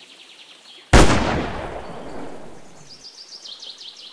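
A rifle fires a single loud shot that echoes and fades.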